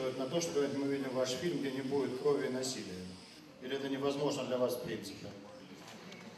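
A middle-aged man speaks loudly into a microphone, asking a question.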